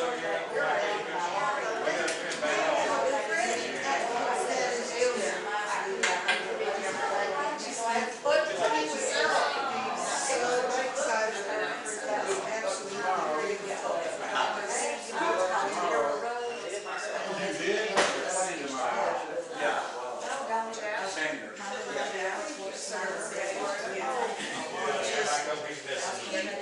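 Several men chat at once nearby.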